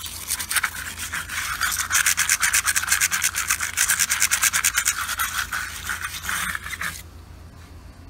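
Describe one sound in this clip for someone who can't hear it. A stiff brush scrubs rapidly against a hard plastic surface.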